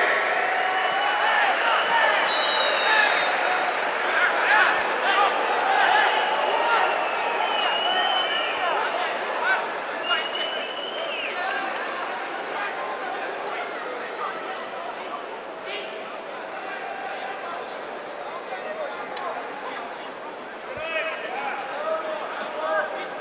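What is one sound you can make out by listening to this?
A large stadium crowd chants and shouts loudly, echoing in the open air.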